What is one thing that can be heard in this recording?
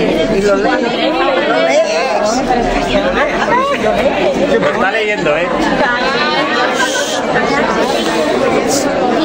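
Several adults and children talk over one another close by.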